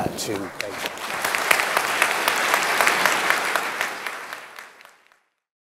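An audience applauds in a large hall, then the clapping fades away.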